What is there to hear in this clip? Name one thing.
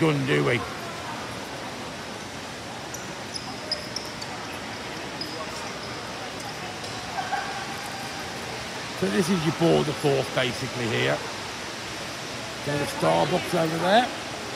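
Distant voices murmur in a large echoing hall.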